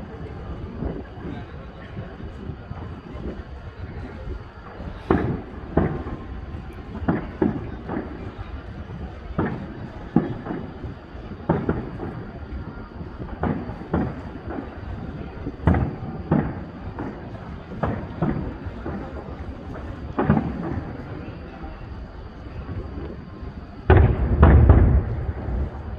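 Fireworks burst with deep booms and sharp bangs that echo far off.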